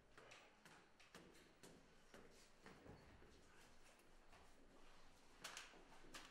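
Footsteps tread softly on a hard floor.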